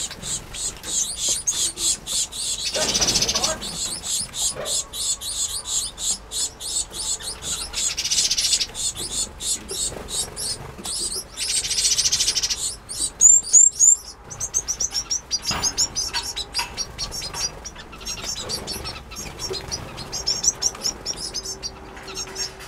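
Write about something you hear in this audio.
Many small finches chirp and twitter rapidly up close.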